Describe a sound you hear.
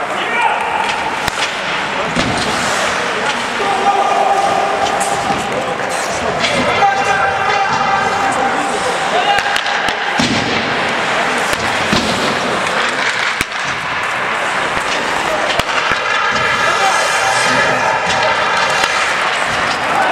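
Hockey sticks clack against a puck and each other now and then.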